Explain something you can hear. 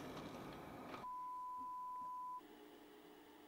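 A steady test tone beeps.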